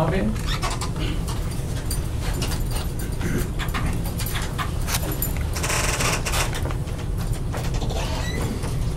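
A bag rustles and crinkles close by.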